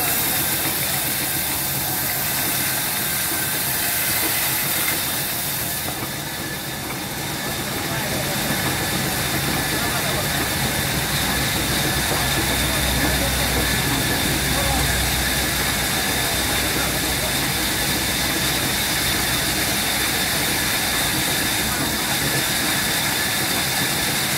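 A large circular saw whines loudly, cutting through a thick log.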